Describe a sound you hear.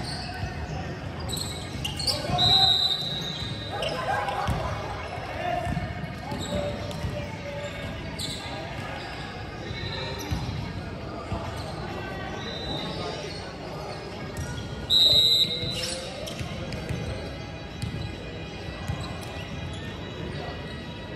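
Young people chatter and call out in the distance.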